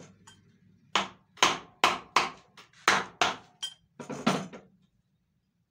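Sharp metal knocks ring out in a quick series of loud blows.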